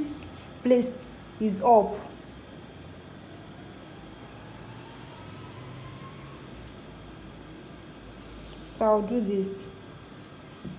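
A woman speaks calmly close to a microphone.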